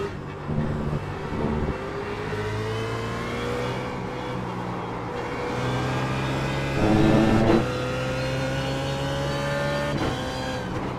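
A racing car engine roars steadily, rising in pitch as it speeds up and dropping as it shifts gears.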